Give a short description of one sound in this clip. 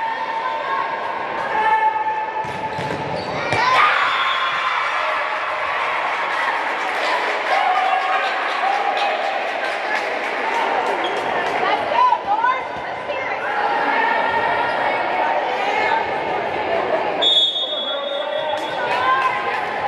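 A volleyball thuds against hands and arms.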